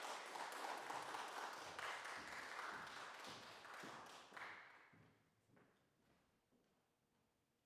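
Footsteps walk across a wooden stage in a large echoing hall.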